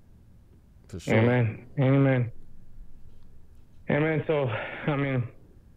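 A man speaks into a microphone over an online call, in short animated bursts.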